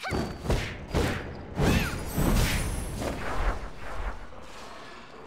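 A sword slashes and strikes with sharp whooshing impacts.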